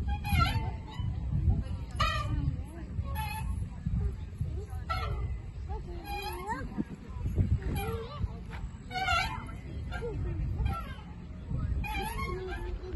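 Young girls squeal and laugh excitedly close by.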